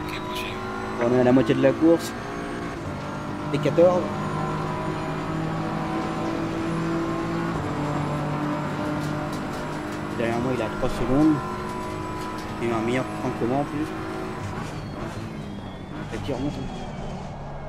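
A young man speaks in short bursts through a microphone, close by.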